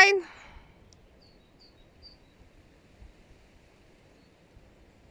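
Wind blows softly across open ground.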